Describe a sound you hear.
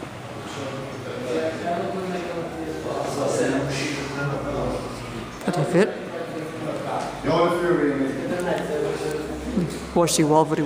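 Men talk with animation nearby.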